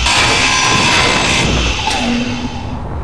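A grinder screeches harshly as it cuts metal.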